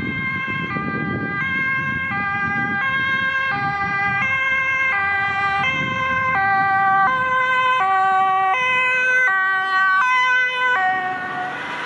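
An ambulance siren wails loudly in a two-tone pattern, growing closer.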